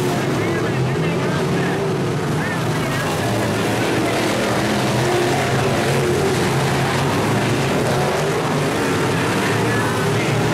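Race car engines roar loudly around a dirt track.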